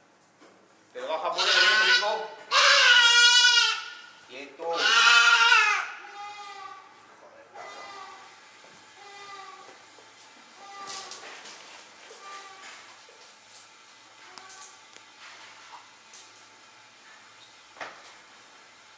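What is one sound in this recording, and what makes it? A young goat bleats loudly and desperately, close by, then keeps bleating more weakly.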